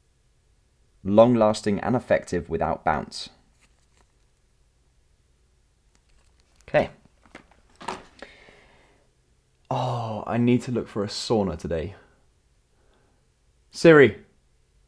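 A young man speaks casually close by, with pauses.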